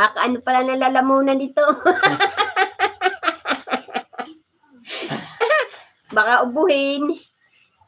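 An elderly woman talks with animation close to a phone microphone.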